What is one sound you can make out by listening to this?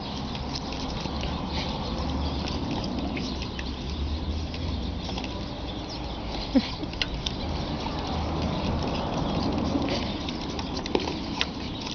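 A dog barks close by.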